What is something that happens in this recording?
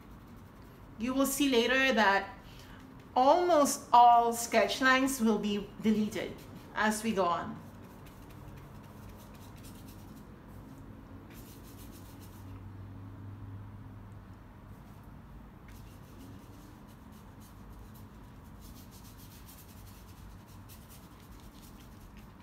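A paintbrush softly strokes across paper.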